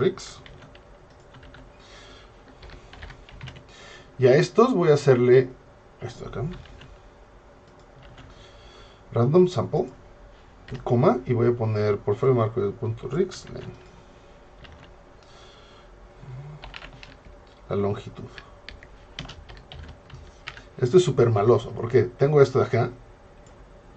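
Keyboard keys click softly.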